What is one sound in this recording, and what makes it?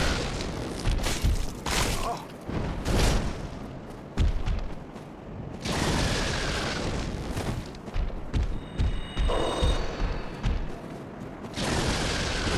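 Sharp impacts and blasts thud.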